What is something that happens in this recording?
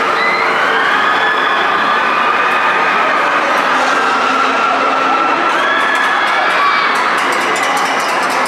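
A crowd of riders screams loudly and continuously.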